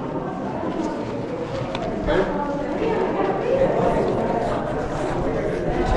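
A crowd of adults and children chatter nearby in an echoing space.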